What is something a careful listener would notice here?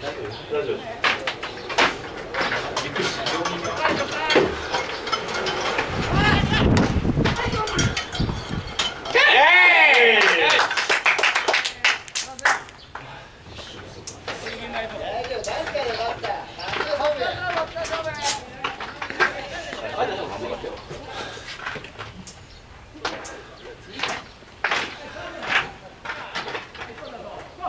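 Young men shout and call out across an open field outdoors.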